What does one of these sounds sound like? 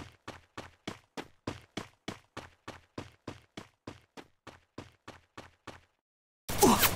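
Footsteps tread at a steady, quick pace on a hard surface.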